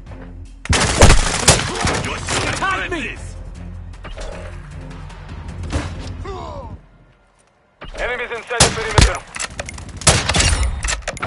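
Rifle shots crack loudly in short bursts.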